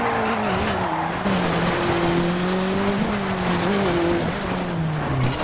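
A racing car engine roars and revs, rising and falling in pitch.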